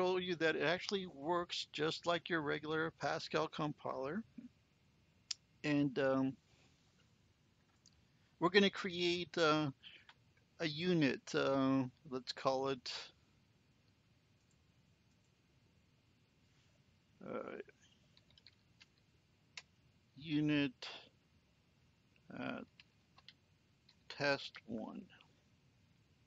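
An older man talks calmly into a microphone, in short bursts with pauses.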